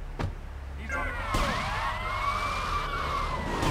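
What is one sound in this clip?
A police siren wails in rising and falling sweeps.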